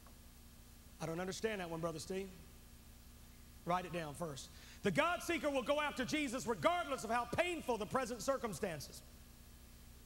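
A man speaks with emotion into a microphone.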